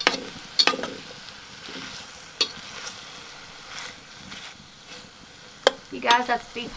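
A metal fork clinks against a pan while stirring.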